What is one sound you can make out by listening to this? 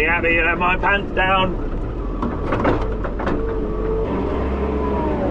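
A tractor engine rumbles steadily close by.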